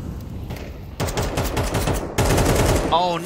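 Rapid gunfire rattles from a rifle.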